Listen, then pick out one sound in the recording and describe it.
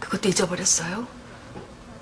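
A young woman speaks earnestly and quietly, close by.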